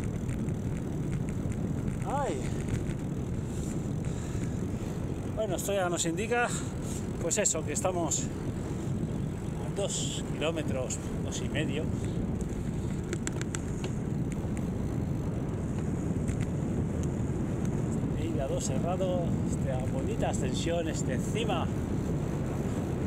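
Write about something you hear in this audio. Wind buffets and rumbles steadily past a moving cyclist.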